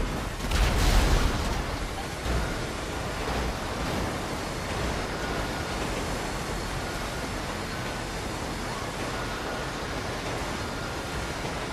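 A freight train rumbles and clatters past on the tracks.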